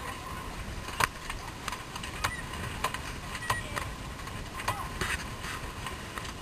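A sailboat winch clicks as it is cranked.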